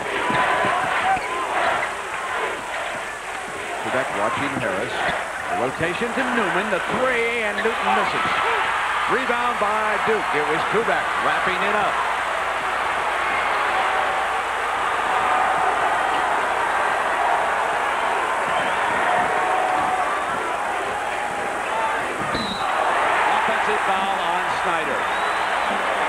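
A large crowd roars and cheers in a big echoing arena.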